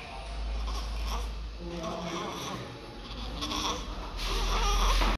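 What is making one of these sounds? A newborn baby sucks noisily on its fist.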